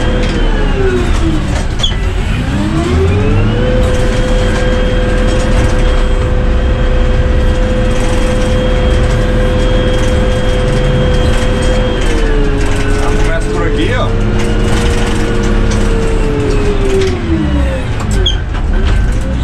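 A heavy diesel engine drones steadily up close, its pitch rising and falling as it revs.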